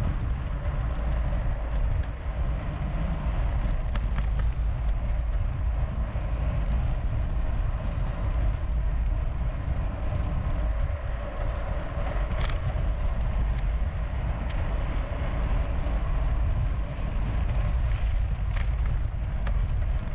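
Wind rumbles steadily across a microphone outdoors.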